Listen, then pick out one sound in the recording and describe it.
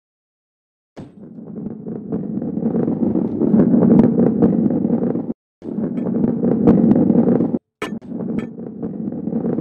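A ball rolls with a steady rumble along a wooden track.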